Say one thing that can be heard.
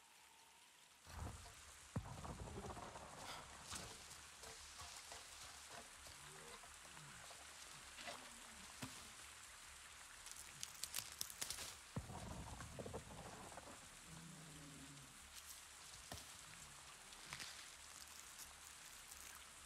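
Leaves and plants rustle as someone pushes through dense undergrowth.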